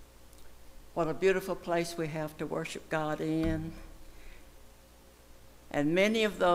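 An elderly woman speaks slowly and with feeling into a microphone.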